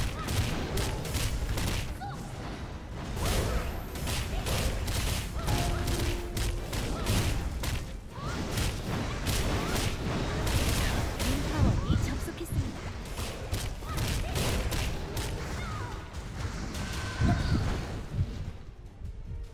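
Fiery spell blasts crackle and boom in quick bursts.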